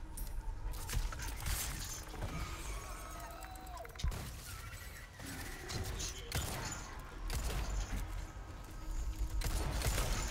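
A pistol fires sharp, loud shots with a short echo.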